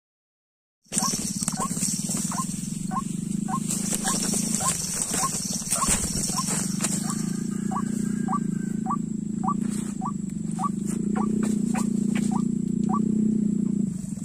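A bird gives short, high chirps again and again.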